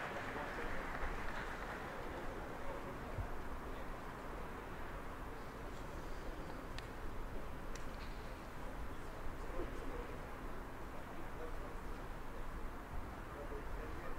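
A small crowd murmurs steadily in the distance.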